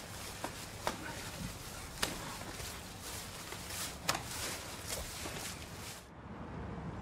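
Dry leaves rustle and crunch under many footsteps outdoors.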